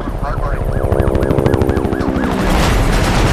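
Police sirens wail up and down.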